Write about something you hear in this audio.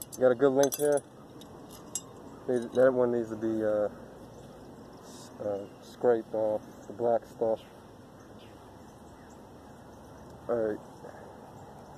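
A young man talks calmly up close.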